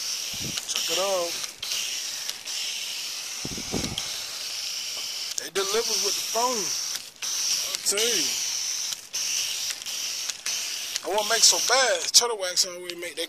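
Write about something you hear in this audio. Water hisses steadily from a spraying hose.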